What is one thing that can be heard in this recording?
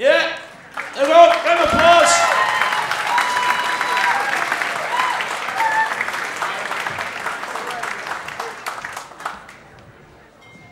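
An audience claps and cheers in a large room.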